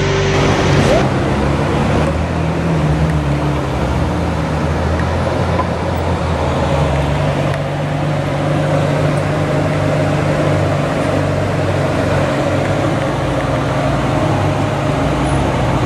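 A sports car engine revs and roars as the car pulls away.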